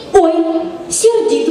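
A woman speaks brightly into a microphone, heard over loudspeakers.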